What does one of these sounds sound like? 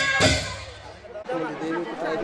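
A small band plays lively folk music nearby.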